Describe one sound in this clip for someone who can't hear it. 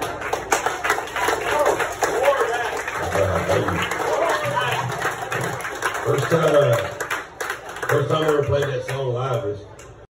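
A crowd chatters in a noisy room.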